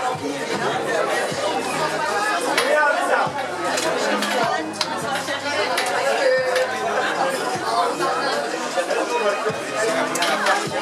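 A crowd of men and women chatter at once, close by, outdoors.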